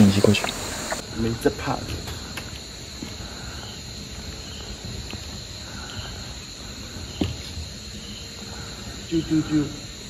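Footsteps thud on a wooden bridge.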